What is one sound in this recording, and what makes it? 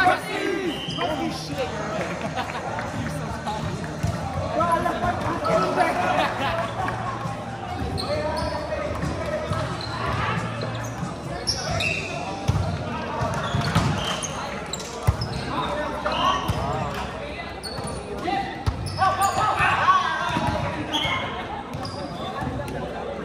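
Young men talk and call out across a large echoing hall.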